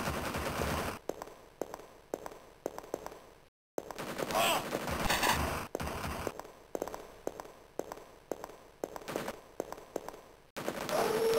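A blaster fires shot after shot in quick bursts.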